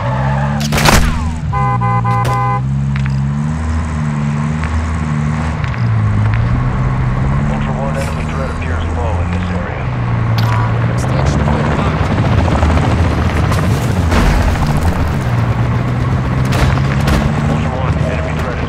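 A car engine drones and revs as the vehicle drives along a road.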